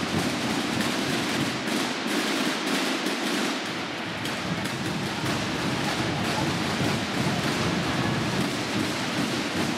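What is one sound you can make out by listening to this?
Many drums beat in a fast, steady roll in a large echoing hall.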